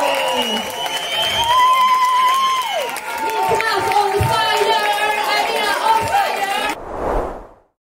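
A brass band plays loudly.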